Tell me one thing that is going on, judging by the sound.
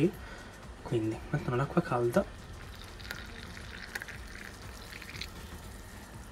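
Hot water pours into a glass.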